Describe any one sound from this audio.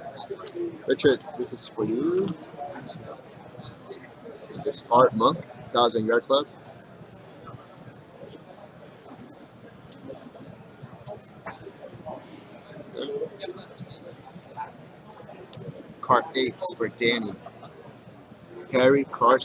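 Plastic card sleeves rustle and crinkle as they are handled.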